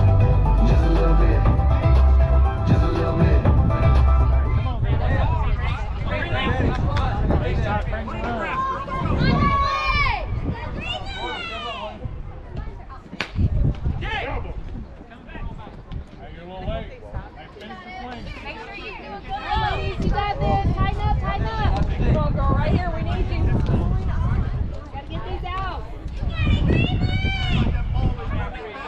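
Young players call out to each other across a field.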